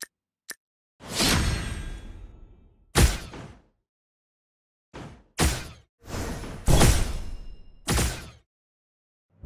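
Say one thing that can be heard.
Battle sound effects crash and blast in quick bursts.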